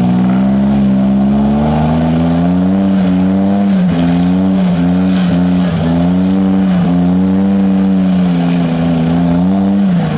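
An off-road vehicle's engine revs hard and strains, its pitch rising and dipping.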